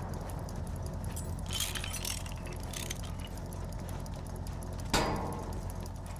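A wrench clanks repeatedly against metal.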